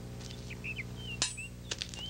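Footsteps tread on grass.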